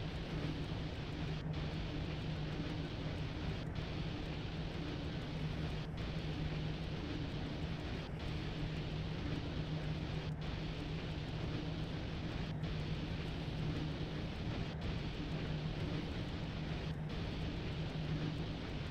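Train wheels rumble over the rails.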